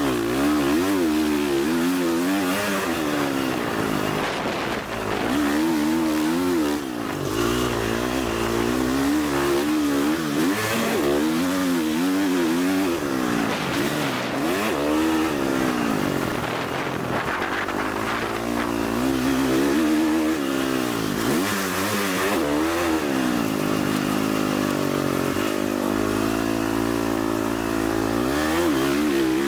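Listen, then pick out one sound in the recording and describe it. A dirt bike engine roars up close, revving up and down as it shifts gears.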